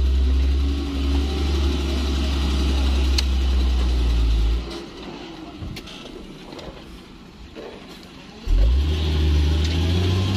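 A heavy truck engine roars and strains as the truck struggles in mud.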